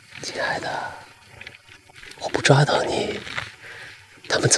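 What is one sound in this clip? A young man speaks close by, teasing and then stern.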